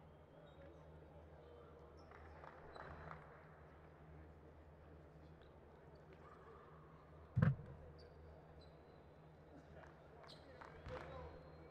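A large crowd murmurs in a big echoing arena.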